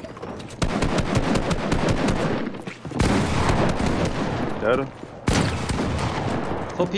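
Rapid gunshots crack from a video game.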